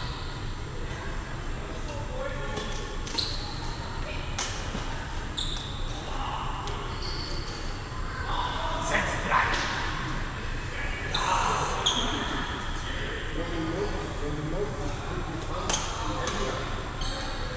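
Men call out to each other in a large echoing hall.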